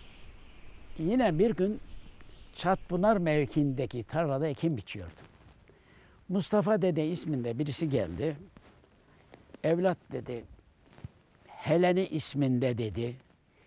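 An elderly man speaks slowly and with feeling, close by.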